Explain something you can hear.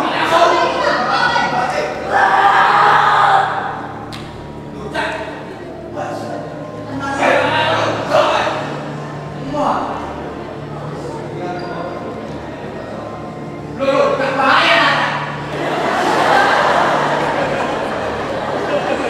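Children chatter and shout in a large echoing hall.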